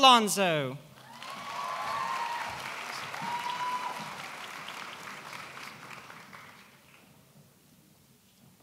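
An audience claps and cheers, then fades away.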